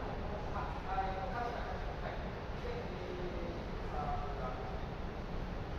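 Adults talk at a distance in a large echoing hall.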